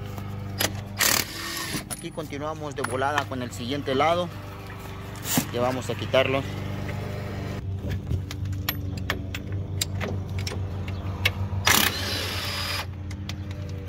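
An impact wrench rattles loudly in short bursts.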